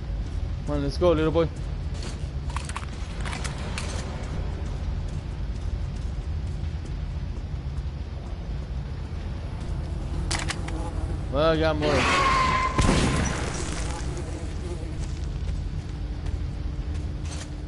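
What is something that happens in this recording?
Footsteps crunch over debris and wooden planks.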